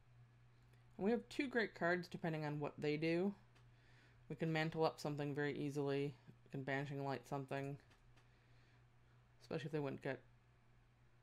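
A woman talks with animation into a close microphone, in short bursts with pauses.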